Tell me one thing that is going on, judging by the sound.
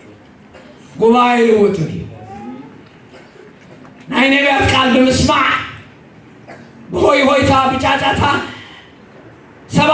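An elderly man preaches with animation into a microphone, in bursts with pauses, in an echoing hall.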